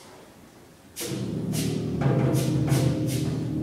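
Drums strike sharply in a concert band.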